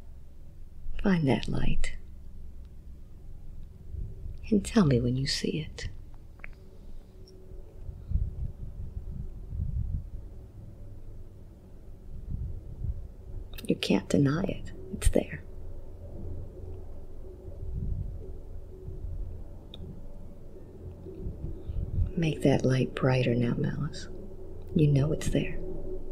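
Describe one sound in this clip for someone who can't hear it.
A woman speaks softly and slowly into a close microphone, with long pauses.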